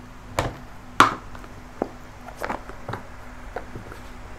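Cards slide and tap against each other as a deck is handled.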